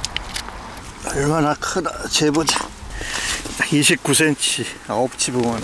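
An elderly man speaks calmly close by.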